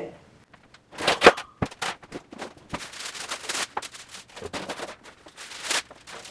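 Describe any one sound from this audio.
A baking tray clatters and rustles.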